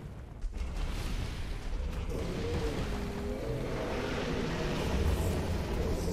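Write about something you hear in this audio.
A creature breathes a roaring gush of fire.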